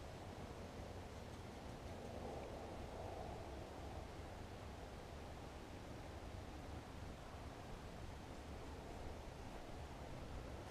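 A fishing reel whirs softly as line is wound in.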